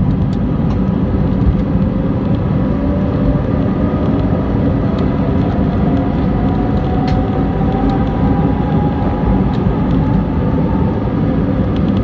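A jet engine's whine rises steadily in pitch.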